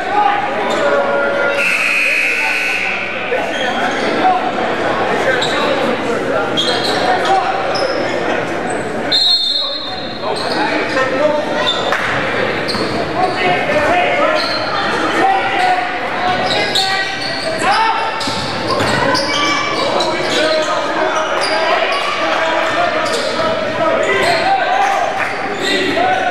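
A crowd in an echoing gym chatters and calls out.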